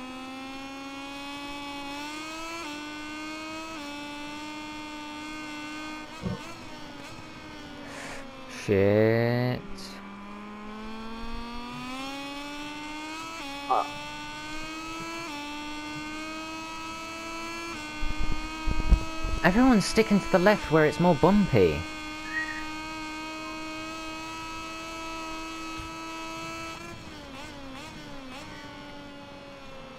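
A motorcycle engine roars and revs up and down through gear changes.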